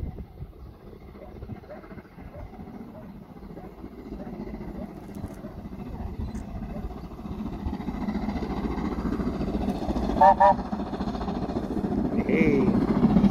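A steam train rumbles along the tracks, growing steadily louder as it approaches.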